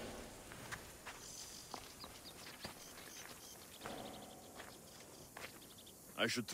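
Footsteps scuff and tap on rocky ground.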